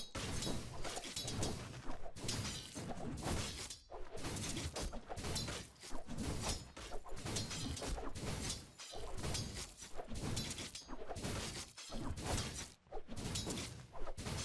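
Weapons clash and spells crackle in a fierce fight.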